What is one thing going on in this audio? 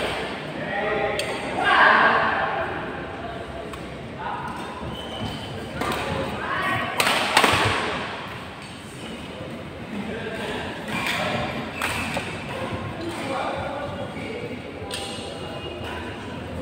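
Young men shout and talk in a large echoing hall.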